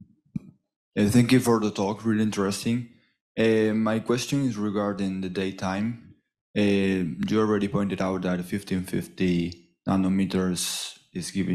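A man speaks through a microphone, asking a question.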